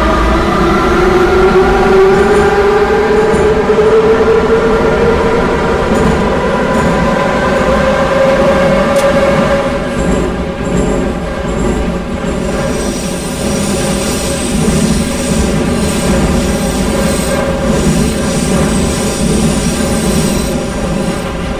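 Train wheels rumble steadily along the rails in a tunnel.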